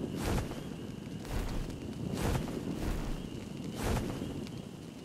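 Large wings flap in heavy beats.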